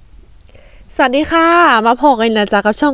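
A young woman speaks brightly close by.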